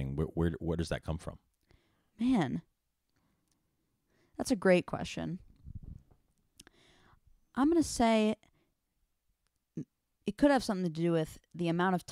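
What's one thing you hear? A man speaks calmly into a microphone, close by, with short pauses.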